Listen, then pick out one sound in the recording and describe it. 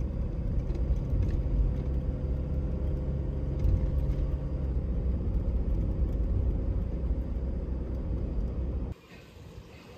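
A car drives along an asphalt road, its tyre and engine rumble heard from inside.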